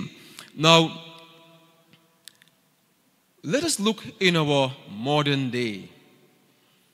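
A man speaks into a microphone over a loudspeaker in an echoing hall, slowly and with emphasis.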